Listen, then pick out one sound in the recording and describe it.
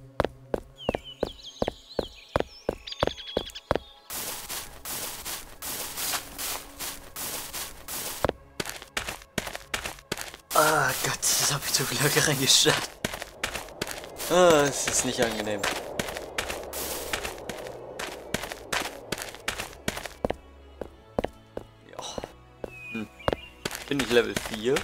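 Footsteps fall at a steady walking pace.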